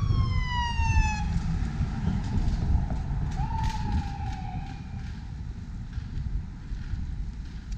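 Traffic hums steadily on a nearby street.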